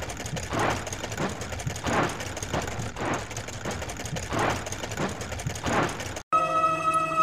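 Machine rollers whir with rhythmic whooshes.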